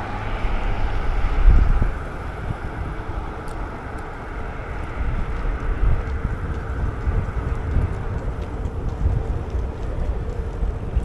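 Wind buffets the microphone outdoors with a low, gusty rumble.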